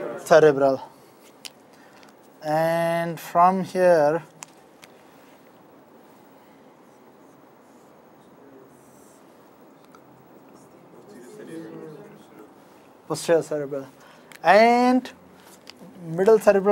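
A man speaks calmly and clearly nearby, in short phrases with pauses.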